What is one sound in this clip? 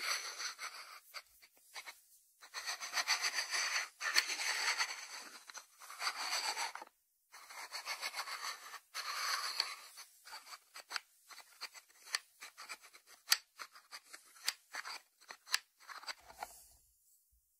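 Fingertips tap and scratch on a ceramic lid.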